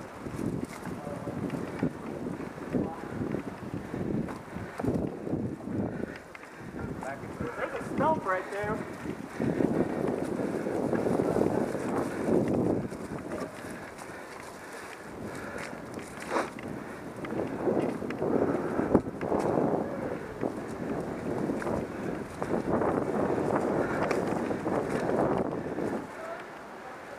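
A bicycle rattles and clatters over bumps on the trail.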